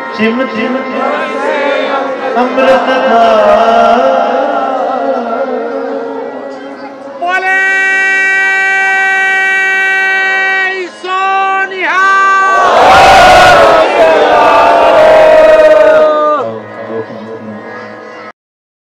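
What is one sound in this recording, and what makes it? A harmonium plays sustained chords.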